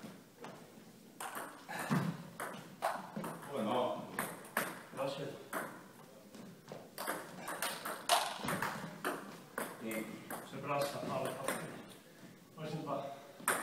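A ping-pong ball clicks back and forth off paddles and a table.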